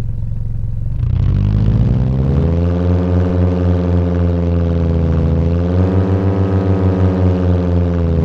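A car engine revs up and pulls away, rising and falling in pitch.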